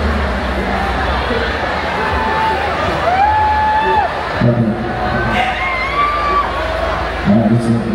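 A young man raps loudly into a microphone over a booming loudspeaker.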